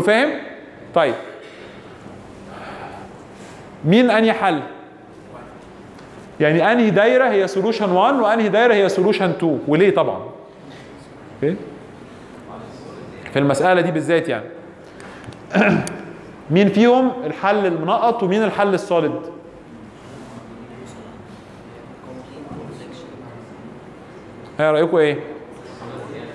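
A man lectures calmly into a microphone, heard through a loudspeaker in an echoing room.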